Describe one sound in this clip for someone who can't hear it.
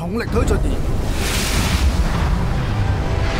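A loud rushing whoosh sweeps past and fades.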